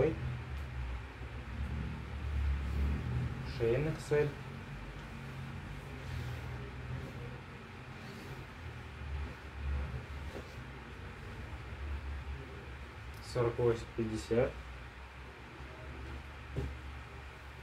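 Fabric rustles and swishes as garments are handled and laid down.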